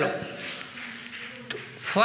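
A cloth rubs against a whiteboard.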